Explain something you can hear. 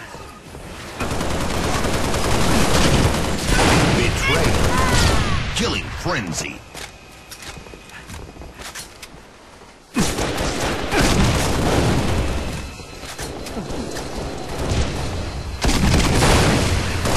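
Gunfire rattles and booms in a video game.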